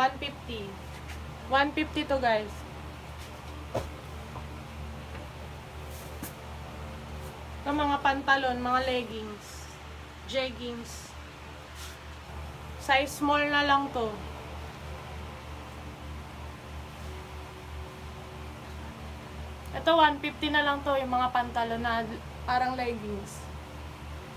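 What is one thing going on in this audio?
A young woman talks casually in short bursts, close by.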